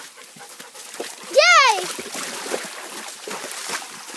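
Water splashes under a dog's paws.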